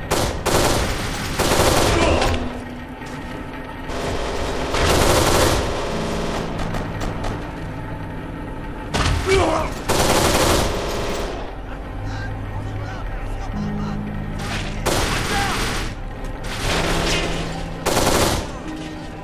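Automatic gunfire rattles in short, loud bursts.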